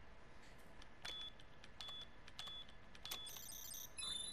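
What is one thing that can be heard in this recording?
Keypad buttons beep one after another.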